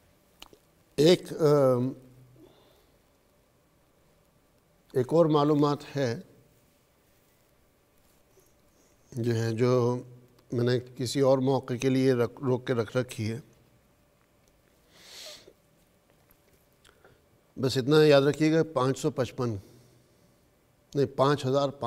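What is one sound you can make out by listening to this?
A man speaks calmly into a nearby microphone, in short bursts with pauses.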